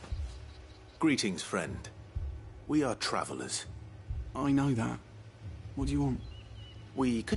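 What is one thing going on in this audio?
A young man speaks calmly and curtly.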